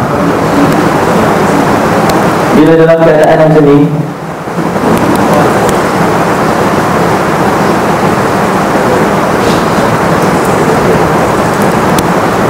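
A man speaks calmly through a microphone, as if lecturing.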